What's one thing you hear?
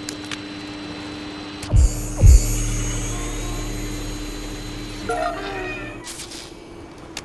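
A small electric motor whirs steadily.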